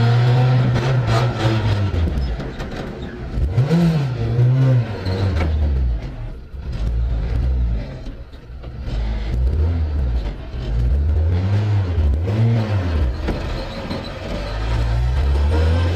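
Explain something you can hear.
A four-cylinder rally car engine revs up and down through the gears, heard from inside the cabin.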